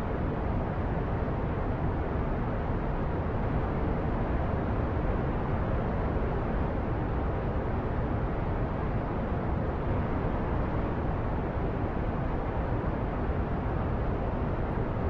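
A rocket engine roars steadily.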